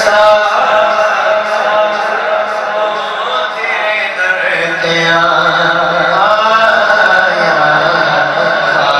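A young man sings a devotional chant into a microphone, amplified through loudspeakers in an echoing hall.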